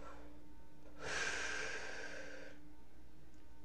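A man exhales with a long, breathy rush of air.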